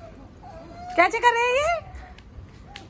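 A toddler squeals excitedly nearby.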